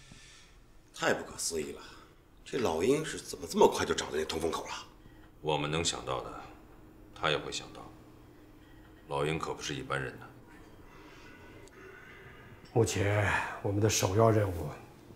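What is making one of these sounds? A middle-aged man speaks calmly and seriously, close by, with pauses.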